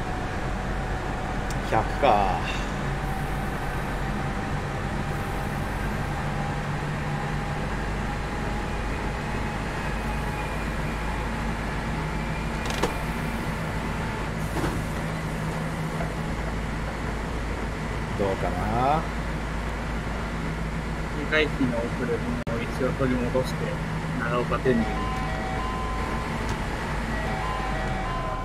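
An electric train motor hums steadily as the train runs along the rails.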